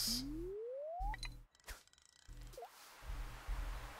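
A bobber plops into water.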